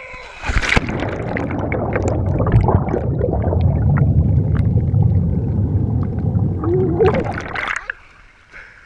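Water rumbles and bubbles loudly underwater, close by.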